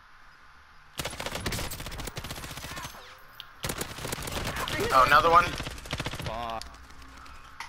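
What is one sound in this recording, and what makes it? Rapid gunfire bursts out in quick volleys.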